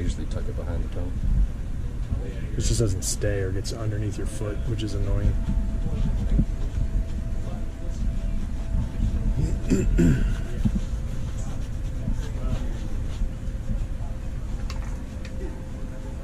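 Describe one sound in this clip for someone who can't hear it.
A cloth rubs and wipes against a leather shoe.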